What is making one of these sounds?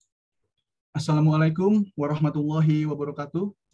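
A young man speaks calmly through a microphone on an online call.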